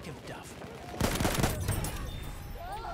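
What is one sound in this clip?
A submachine gun fires a loud burst close by.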